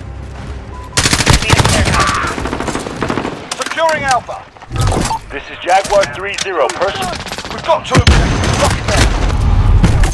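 Rifle shots ring out in rapid bursts.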